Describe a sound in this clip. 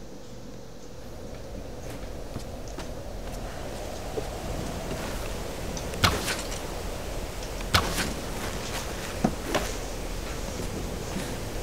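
Waves crash against rocks below.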